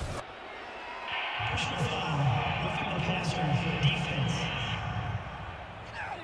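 A man announces a penalty through a stadium loudspeaker.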